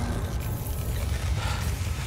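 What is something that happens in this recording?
Electricity crackles and snaps sharply.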